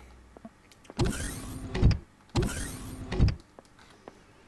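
A sliding door whooshes open.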